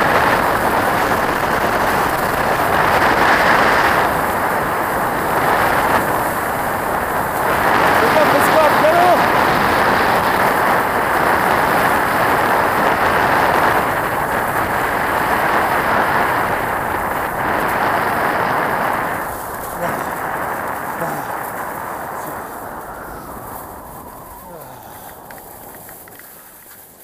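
Wind rushes loudly past close by, then dies down as the skier slows.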